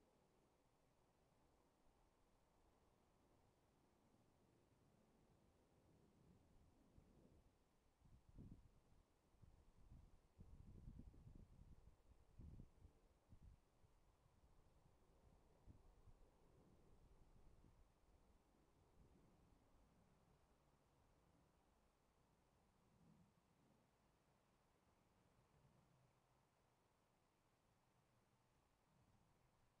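A horse trots on soft grass at a distance.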